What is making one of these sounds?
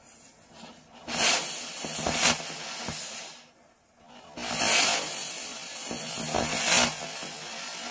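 Small firecrackers pop in quick bursts.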